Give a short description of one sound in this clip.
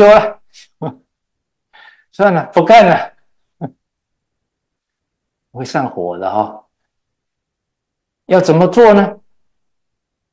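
An elderly man speaks calmly into a microphone in short phrases, with pauses.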